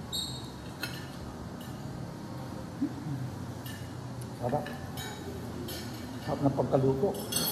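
A metal spoon and fork clink against a plate.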